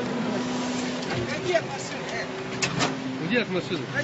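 A car bonnet clunks open.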